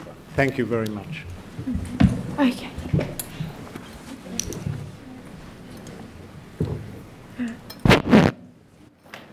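People get up from their seats, and chairs shuffle and knock.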